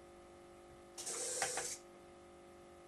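A small electric motor whirs briefly as a pantograph rises.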